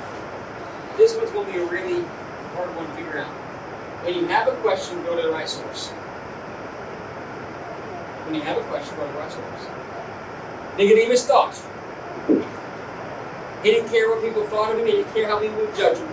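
A middle-aged man speaks with animation to a room.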